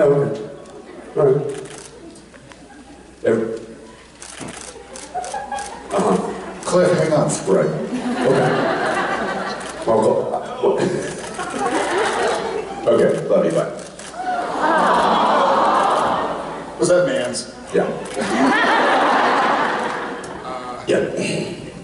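A man speaks with animation through a microphone, heard over loudspeakers in a large hall.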